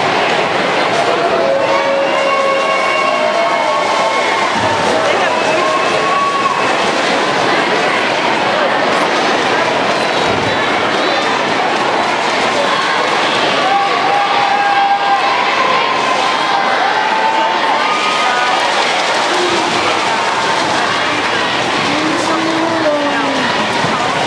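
A crowd of young women cheers and shouts excitedly in a large echoing hall.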